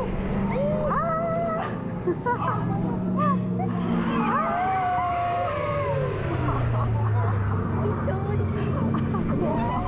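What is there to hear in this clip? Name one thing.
A ride's motor hums steadily.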